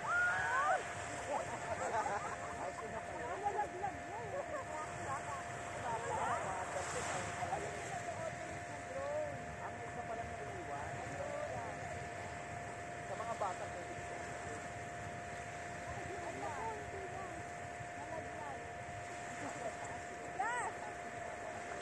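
Small waves lap softly on the shore.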